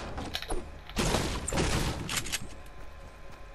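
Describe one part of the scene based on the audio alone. A pickaxe strikes wood with hard, repeated thuds.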